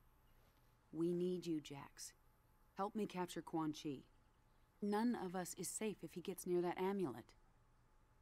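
A woman speaks urgently, close by.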